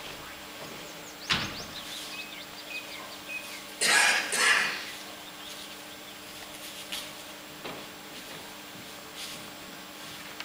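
A man speaks loudly from a stage in a large hall.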